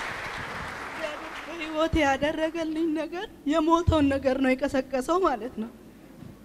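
A middle-aged woman speaks emotionally through a microphone.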